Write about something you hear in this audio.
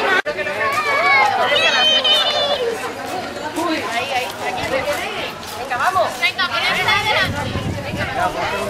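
Small children shout and squeal.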